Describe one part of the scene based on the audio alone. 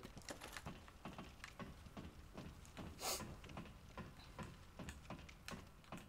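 Metal boots clank on the rungs of a ladder.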